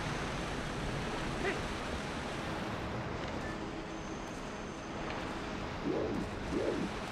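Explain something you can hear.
Steady rain pours down outdoors.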